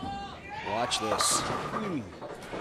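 Bowling pins crash and clatter as a bowling ball strikes them.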